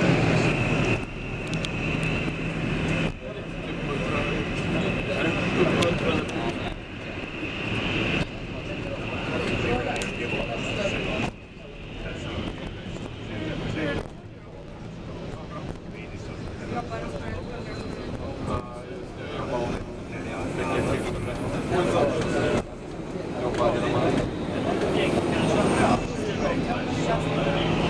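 Jet engines hum and whine steadily, heard from inside an airliner cabin as it taxis.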